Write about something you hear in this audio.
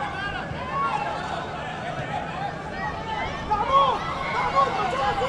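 A crowd shouts and murmurs in an open stadium.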